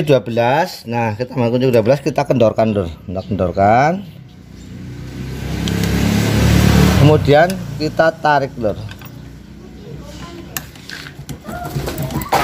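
A metal wrench clinks against a wiper arm.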